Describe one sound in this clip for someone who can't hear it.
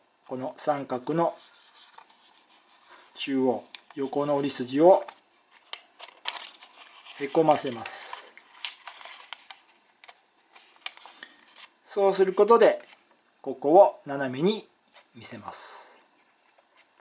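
Paper crinkles and rustles as it is folded.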